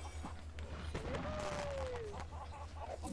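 A bright magical chime rings out with a sparkling shimmer.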